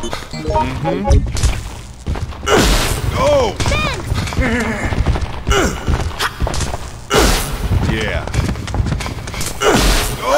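A metal pipe strikes with heavy thuds.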